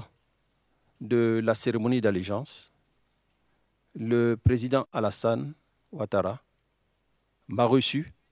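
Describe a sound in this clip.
Another middle-aged man answers calmly through a microphone.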